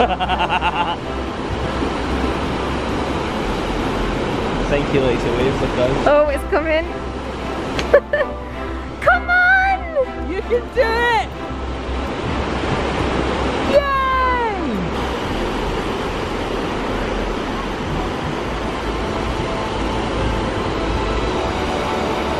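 Waves break and wash onto the shore steadily.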